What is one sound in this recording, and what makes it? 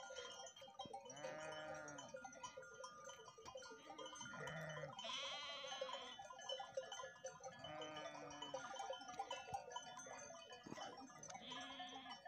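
Sheep bleat loudly nearby, again and again.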